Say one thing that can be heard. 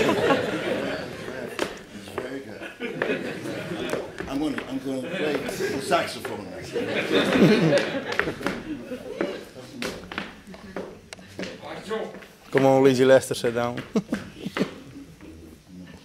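A man talks with animation through a microphone on a stage.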